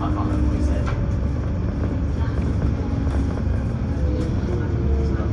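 A bus engine rumbles steadily as the bus drives along a road.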